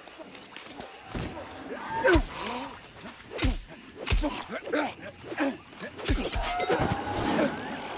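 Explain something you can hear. Sword blows clash and strike during a fight.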